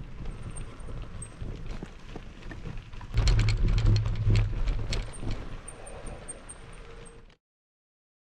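Bicycle tyres crunch and rumble over a dirt track.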